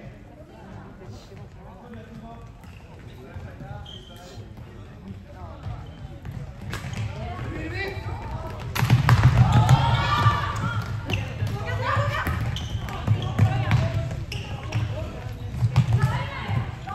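Plastic sticks clack against a ball in an echoing hall.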